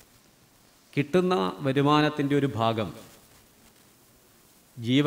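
A middle-aged man speaks calmly into a microphone, heard through a loudspeaker.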